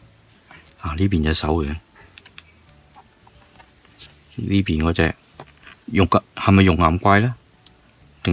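Hard plastic clicks and rubs softly as a toy figure is turned in the hands.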